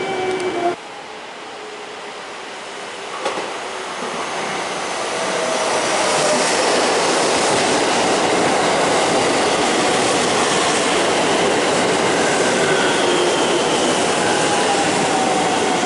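A train approaches and rolls into the station with a growing rumble.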